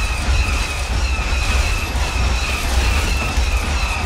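A laser blaster fires in a video game.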